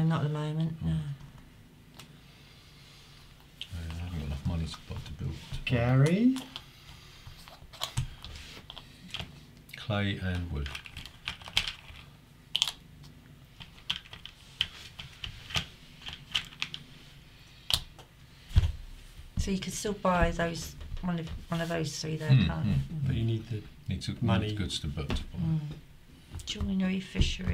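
Men talk casually around a table, close to the microphone.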